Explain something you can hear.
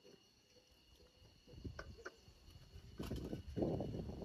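Ceramic teaware clinks.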